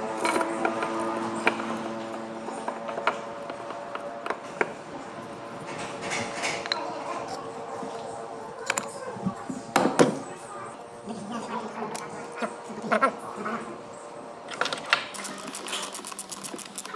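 Metal engine parts clink and knock as they are handled.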